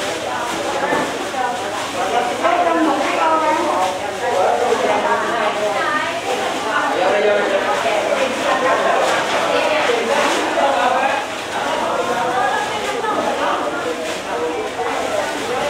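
A crowd of men and women chatter at once in an echoing hall.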